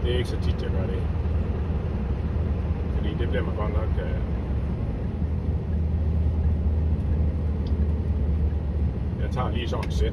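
A car engine hums steadily with tyres rumbling on the road.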